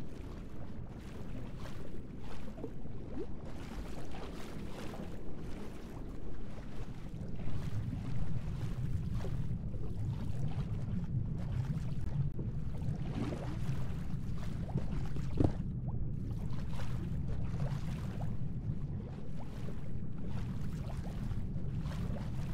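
Water swirls and bubbles steadily underwater.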